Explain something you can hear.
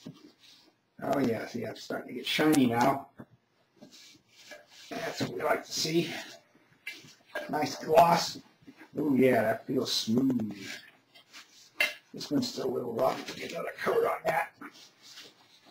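An elderly man talks calmly and close by.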